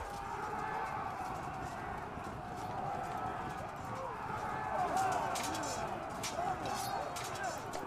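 Weapons clash and clatter in a battle.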